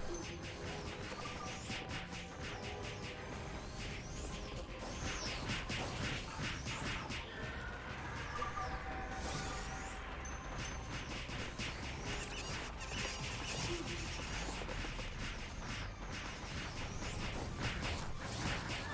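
Magic spell effects crackle and burst rapidly.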